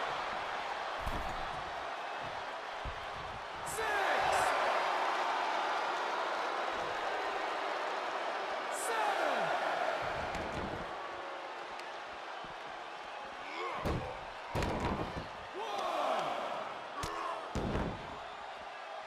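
Heavy bodies thud against a wrestling mat.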